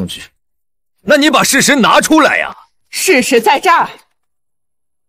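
A middle-aged man argues with animation.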